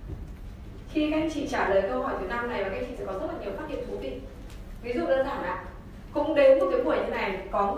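A woman speaks with animation.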